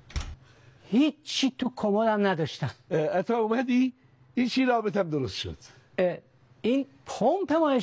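Another middle-aged man answers loudly.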